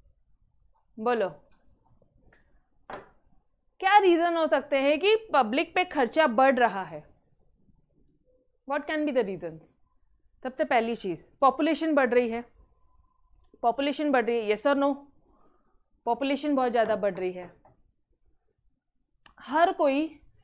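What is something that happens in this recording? A young woman speaks calmly into a close microphone, in short phrases with pauses.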